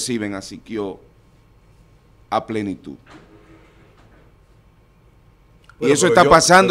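A middle-aged man speaks earnestly into a microphone close by, with pauses.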